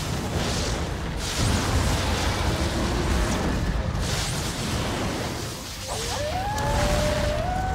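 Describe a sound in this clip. Rapid gunfire crackles in a loud battle.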